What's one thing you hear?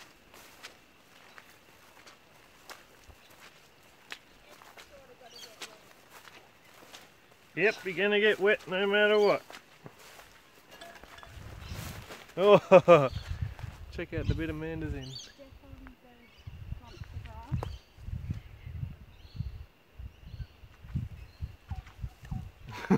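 Footsteps swish through tall dry grass.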